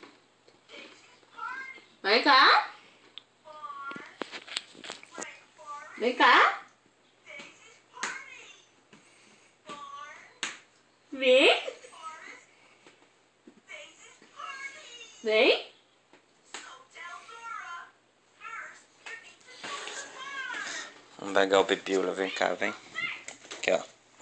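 A baby babbles and squeals loudly close by.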